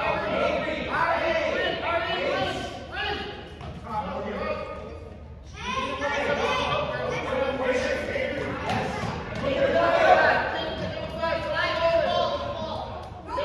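Children shout and call out with animation in a large echoing hall.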